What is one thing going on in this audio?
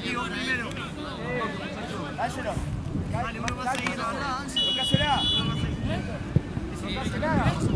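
Young women call out to each other across an open field.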